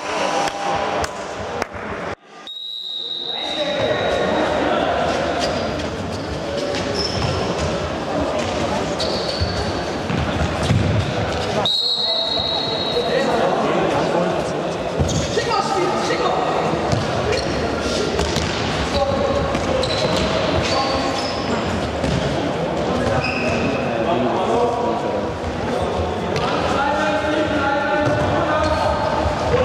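Young players shout and call out to each other across the echoing hall.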